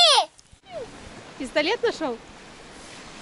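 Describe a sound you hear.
A young child calls out in a high voice close by.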